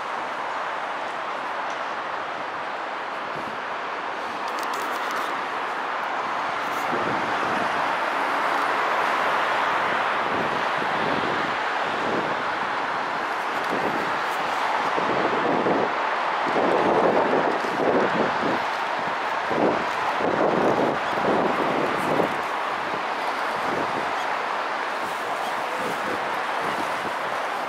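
Distant traffic hums steadily outdoors.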